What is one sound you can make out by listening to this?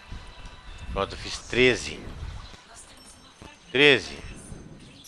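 A game menu plays short bright chimes as choices are confirmed.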